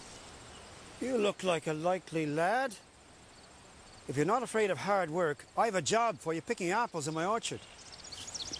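An elderly man speaks slowly and earnestly nearby.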